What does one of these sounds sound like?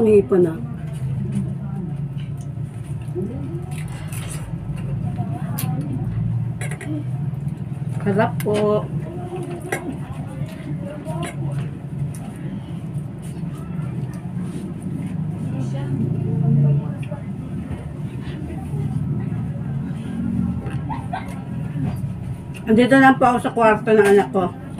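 Shrimp shells crack and crunch as a woman peels them.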